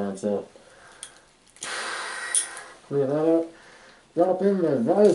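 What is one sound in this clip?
A man speaks, muffled through a gas mask, close by.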